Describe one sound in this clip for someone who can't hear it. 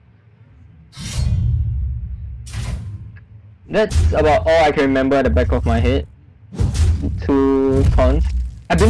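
A game card strikes with a magical crash and whoosh.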